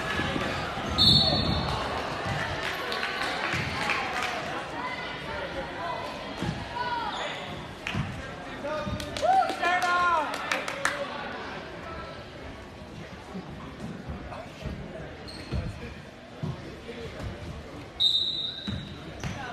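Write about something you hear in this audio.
A referee's whistle blows in short shrill bursts.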